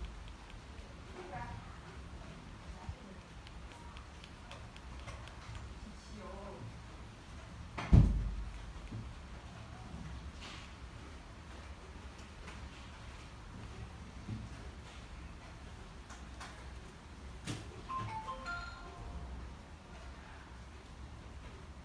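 A remote control button clicks softly.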